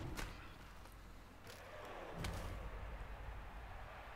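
A heavy thump of a tackle lands.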